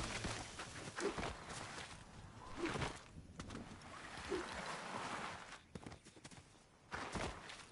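Footsteps patter quickly over grass.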